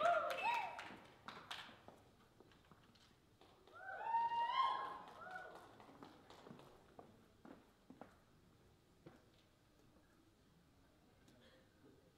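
Dance shoes tap and scuff on a wooden floor.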